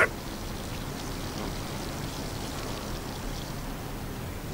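Water trickles steadily down a glass column.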